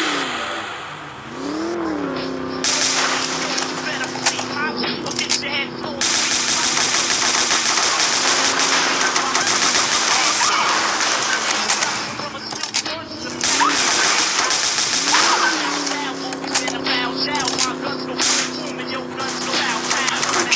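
A sports car engine hums and revs up and down.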